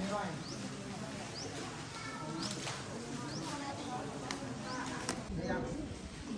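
Many people murmur and chat nearby.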